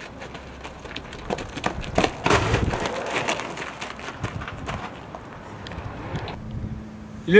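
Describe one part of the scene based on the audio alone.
Footsteps run and scuff on gravel nearby.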